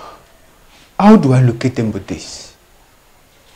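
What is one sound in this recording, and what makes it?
A man speaks slowly in a low, threatening voice.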